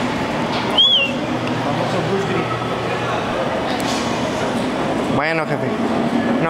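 A crowd murmurs in a large echoing indoor hall.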